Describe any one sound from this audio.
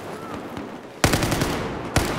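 Gunfire cracks loudly from a rifle.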